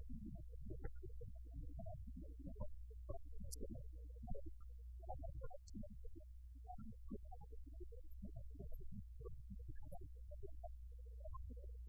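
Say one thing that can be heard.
A middle-aged man speaks calmly and steadily into a microphone.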